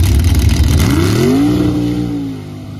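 An engine roars up sharply at full throttle.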